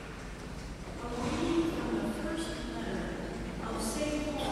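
An elderly woman reads out calmly through a microphone in a large echoing hall.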